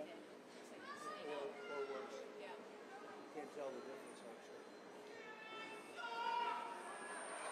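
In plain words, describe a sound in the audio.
An older man speaks into a microphone to a crowd in a large hall.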